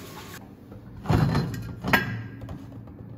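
A glass jar is set down on a metal counter with a knock.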